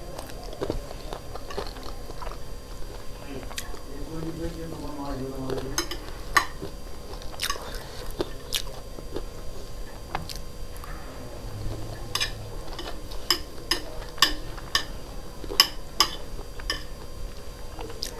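Metal chopsticks click against a ceramic plate.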